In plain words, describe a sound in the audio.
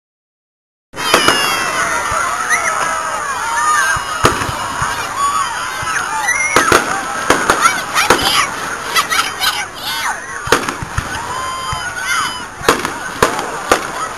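Fireworks bang and crackle in the open air.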